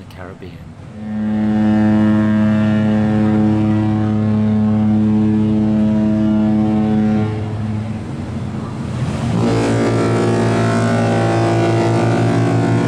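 A ship's horn blasts loudly and deeply, in two long blows.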